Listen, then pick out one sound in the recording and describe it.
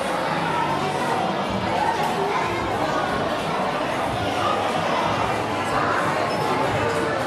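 A large crowd of children chatters loudly in an echoing hall.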